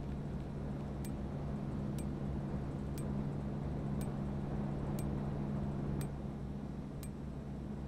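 A soft electronic click sounds at a steady pace as a menu scrolls.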